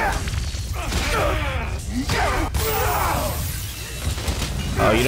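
A loud energy blast booms and crackles.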